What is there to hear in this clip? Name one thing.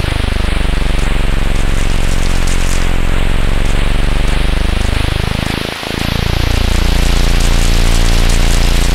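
A propeller fighter plane's engine drones.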